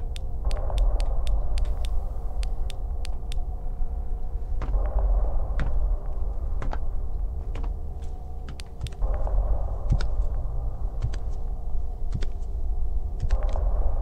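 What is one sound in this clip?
A woman talks calmly into a microphone.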